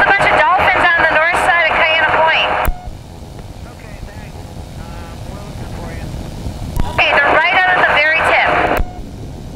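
A man talks through a headset intercom.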